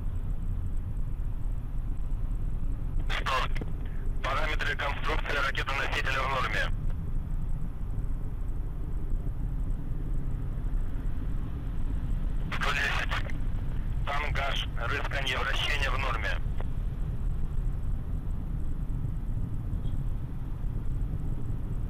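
A rocket engine rumbles low and steady in the distance.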